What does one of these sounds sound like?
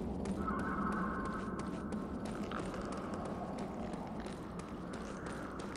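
Footsteps run quickly over a rocky floor.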